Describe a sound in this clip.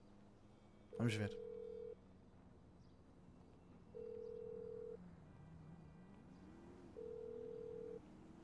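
A phone call rings out with evenly spaced ringing tones.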